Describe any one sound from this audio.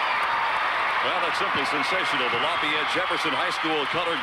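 A man speaks nearby in the crowd.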